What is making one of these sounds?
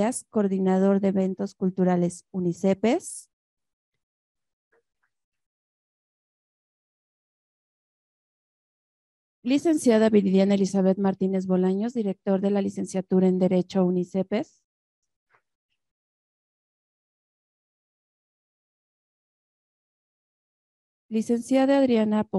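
A woman speaks calmly into a microphone, heard over loudspeakers in a large room.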